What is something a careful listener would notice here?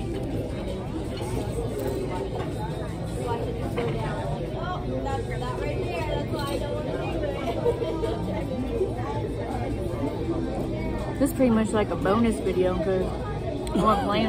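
People chatter in a busy room.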